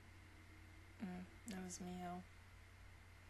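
A young woman speaks a few short words close to a microphone.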